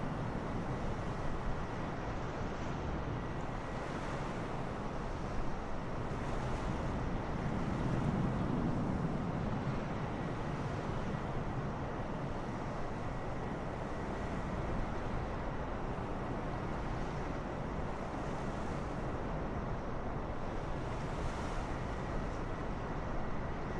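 A jet airliner's engines roar steadily as it flies low.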